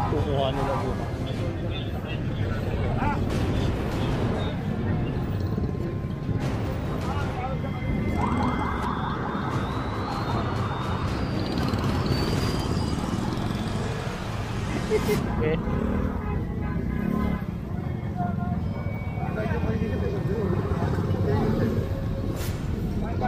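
A busy street hums with traffic outdoors.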